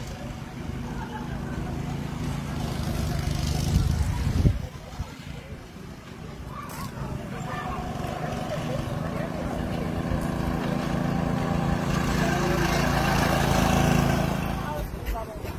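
A go-kart engine drones as the kart approaches and passes.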